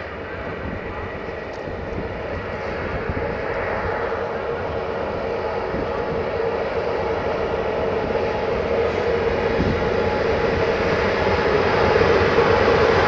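Train wheels rumble and clatter on the rails, growing louder.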